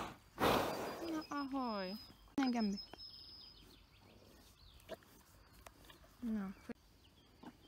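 A woman speaks softly in a high, sing-song voice close by.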